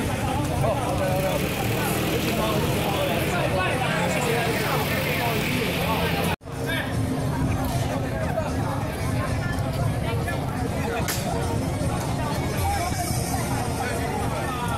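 Music plays over loudspeakers from a stage.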